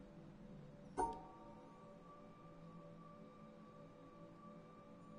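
A soft electronic tone chimes and rings on.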